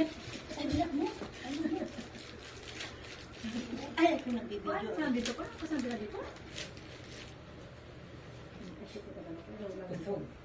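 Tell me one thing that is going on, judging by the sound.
Fabric rustles and crinkles as it is handled.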